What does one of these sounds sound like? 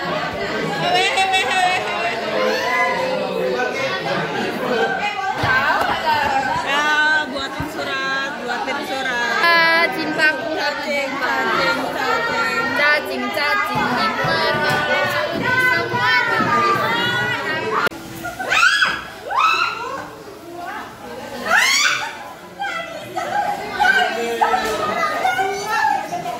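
Teenage girls chatter and laugh close by.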